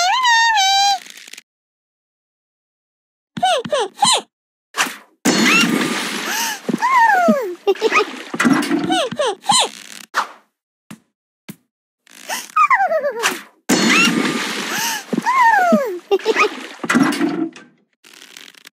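A game plays cartoonish squeaky sound effects.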